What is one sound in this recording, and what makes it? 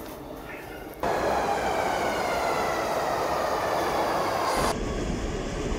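A subway train pulls in with a falling whine.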